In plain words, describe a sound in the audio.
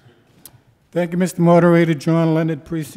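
Another man speaks into a microphone.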